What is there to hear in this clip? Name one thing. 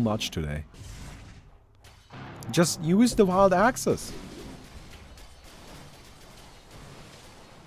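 Magical whooshes and zaps sound from a game battle.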